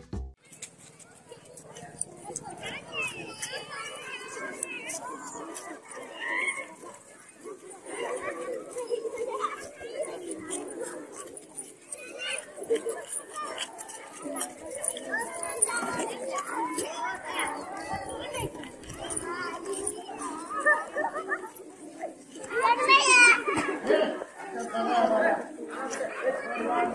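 Children chatter and call out outdoors.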